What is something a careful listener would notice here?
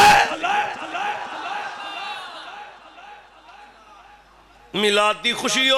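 A man speaks with fervour through a microphone and loudspeakers.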